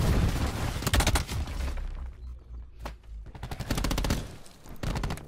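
Gunfire bursts loudly in rapid shots.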